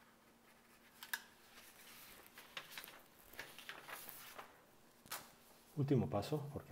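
A sheet of paper rustles as it is turned over and slid across a table.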